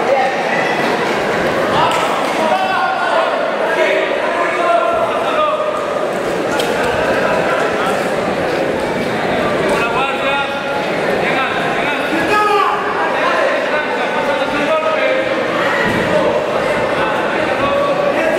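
A crowd shouts and cheers in an echoing indoor arena.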